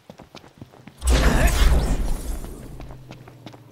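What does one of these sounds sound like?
A sword swings with a loud whoosh.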